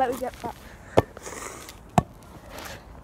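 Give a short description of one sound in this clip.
Sharp thuds of a boy landing a jump on the ground.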